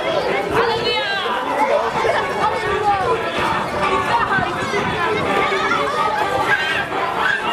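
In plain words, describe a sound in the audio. Many children chatter and call out outdoors.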